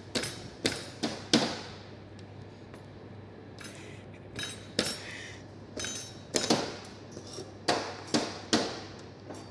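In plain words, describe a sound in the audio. Knives chop sharply on plastic cutting boards in bursts.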